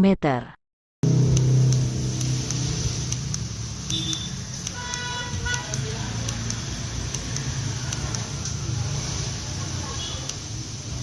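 A switch clicks repeatedly as a thumb presses it.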